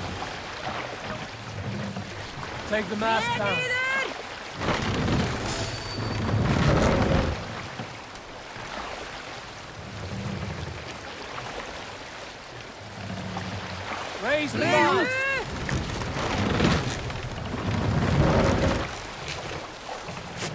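Oars splash into the water in slow, regular strokes.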